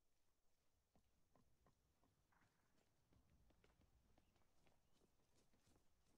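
Footsteps tread on a dirt path.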